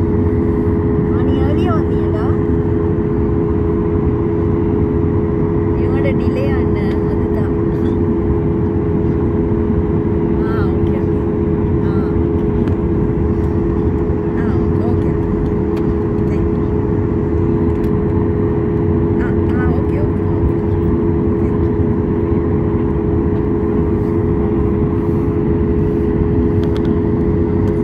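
A jet engine hums and roars steadily close by.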